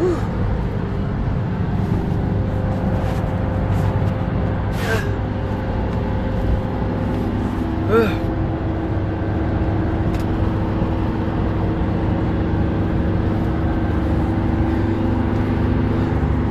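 A vehicle's engine rumbles steadily from inside the cabin.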